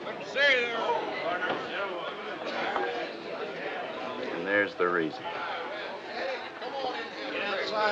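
A crowd murmurs and chatters in the background.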